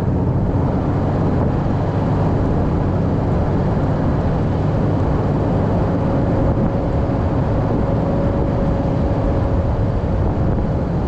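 Strong wind gusts and rumbles against the microphone outdoors.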